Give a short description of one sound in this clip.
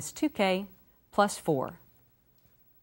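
A woman speaks clearly and calmly into a close microphone.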